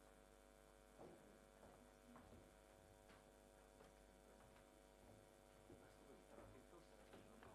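A large audience murmurs and chatters in an echoing hall.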